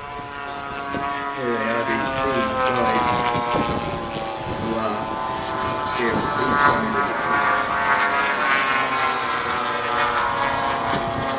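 Aircraft engines drone overhead, growing louder as the planes pass.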